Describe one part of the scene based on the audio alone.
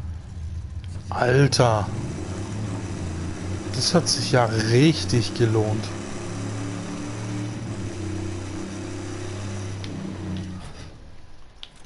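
A car engine roars steadily as the car drives over rough ground.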